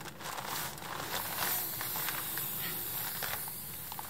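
A sleeping mat crinkles as it is handled.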